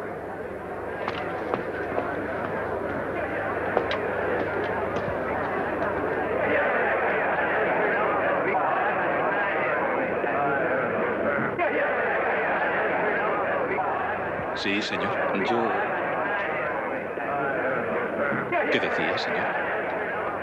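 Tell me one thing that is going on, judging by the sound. A crowd of men murmurs and chatters in a large hall.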